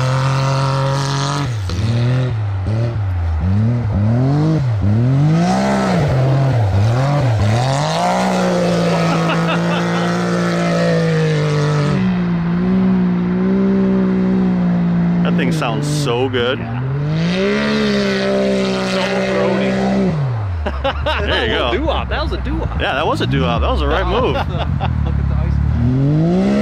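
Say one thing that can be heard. An off-road buggy engine revs hard, rising and falling in pitch.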